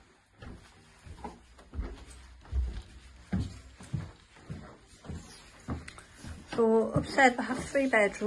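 Footsteps thud up carpeted stairs.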